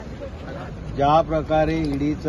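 A middle-aged man speaks animatedly into microphones close by.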